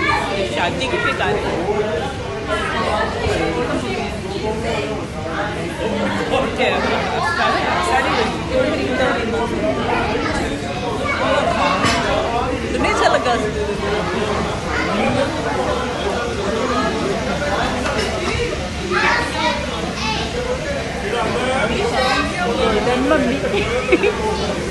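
A crowd of women and men chatter at once in a large room.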